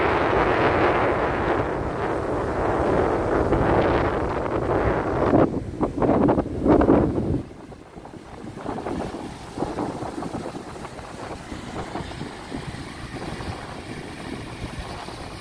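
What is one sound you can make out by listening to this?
Waves crash and wash onto a beach.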